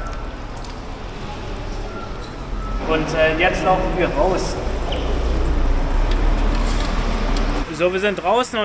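Hand truck wheels roll across a hard floor.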